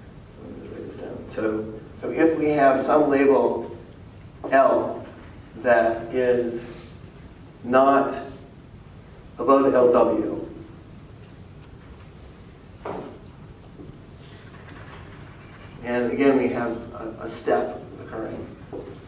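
A man speaks calmly to a room, pausing often.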